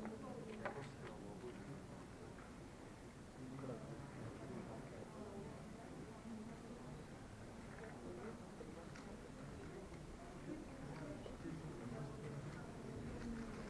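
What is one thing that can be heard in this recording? A young man talks calmly in a large echoing hall.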